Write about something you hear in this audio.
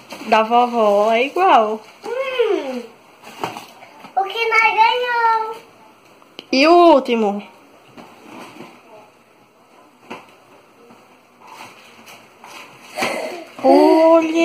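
A young girl talks excitedly nearby in a high voice.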